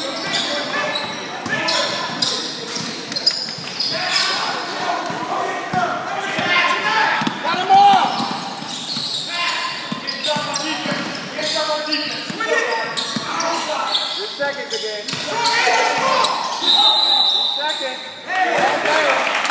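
Spectators and players shout and cheer in an echoing gym.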